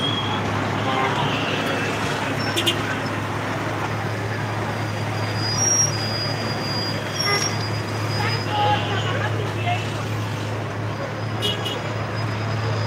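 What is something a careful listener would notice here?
A car engine hums steadily at close range.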